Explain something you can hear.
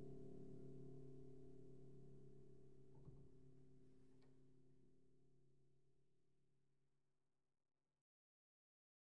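A piano chord rings out and slowly fades away.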